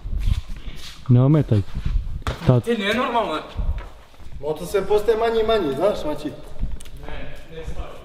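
A young man talks with animation in a large echoing hall.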